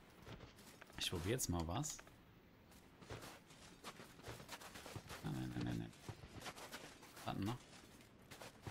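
A man talks casually, close to a microphone.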